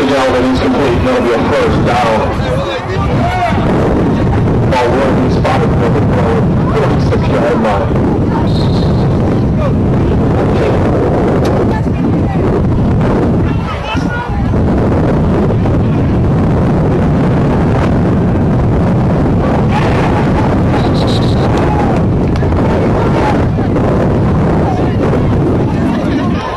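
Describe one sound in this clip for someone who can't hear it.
A crowd of spectators and players cheers and shouts outdoors.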